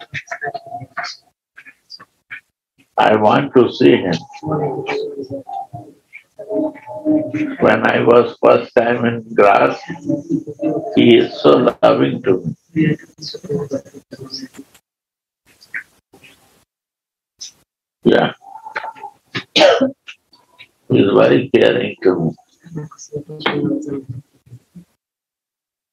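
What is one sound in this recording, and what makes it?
An elderly man speaks calmly, heard through an online call.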